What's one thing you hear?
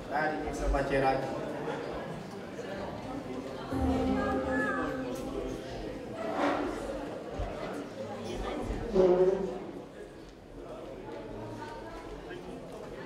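A band plays music through loudspeakers.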